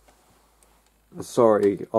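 Plastic toy parts click softly as a hand handles them.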